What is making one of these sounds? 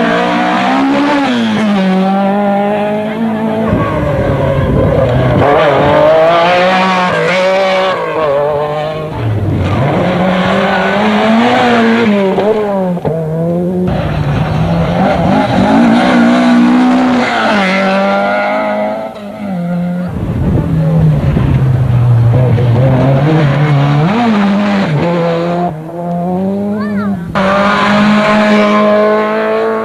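Rally cars race past at full throttle, engines roaring.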